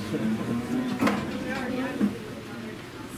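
Metal gates of a cattle chute clank and rattle.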